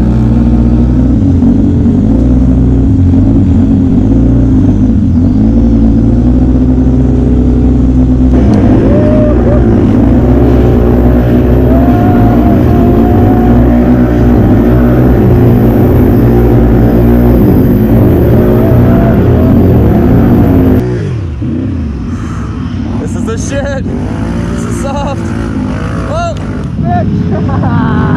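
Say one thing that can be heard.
A quad bike engine roars close by and revs up and down.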